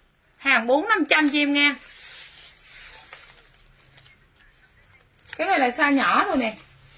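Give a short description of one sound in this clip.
A fabric jacket rustles as it is handled.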